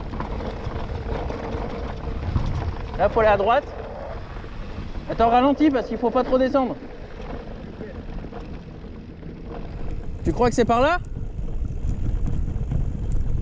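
Wind buffets loudly as the bike rolls downhill.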